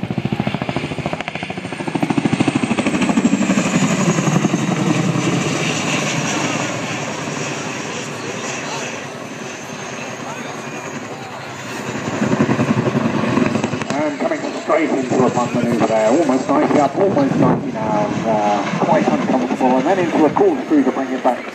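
A large twin-rotor helicopter thuds and roars overhead.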